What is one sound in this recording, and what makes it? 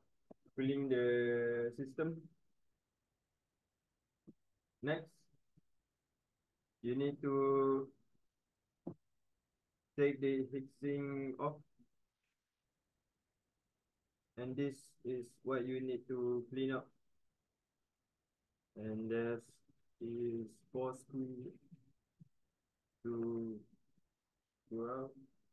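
A man speaks calmly and in short phrases close by, with pauses in between.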